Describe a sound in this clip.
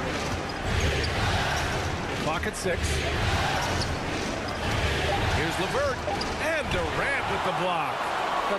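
A crowd murmurs and cheers steadily in a large arena.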